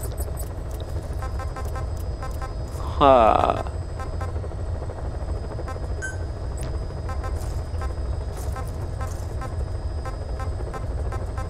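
Short electronic menu blips tick in quick succession.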